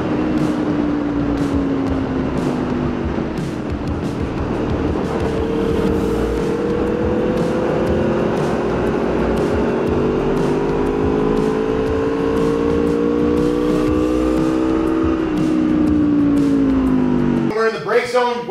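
A motorcycle engine roars at high revs, its pitch slowly rising and falling.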